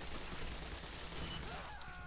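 Gunfire cracks from a rifle.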